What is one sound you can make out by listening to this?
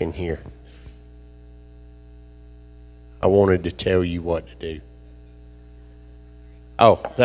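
A middle-aged man speaks with animation into a microphone, heard through a loudspeaker, with pauses between phrases.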